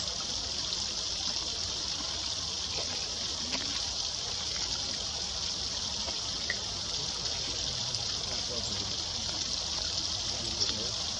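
Water splashes and trickles steadily over rocks.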